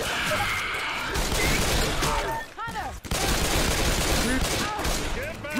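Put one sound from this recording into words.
Gunshots crack rapidly in a game.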